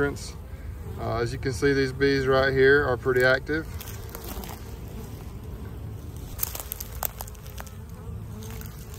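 Bees buzz around a hive entrance.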